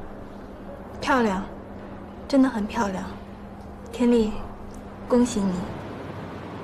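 A second young woman answers calmly and warmly up close.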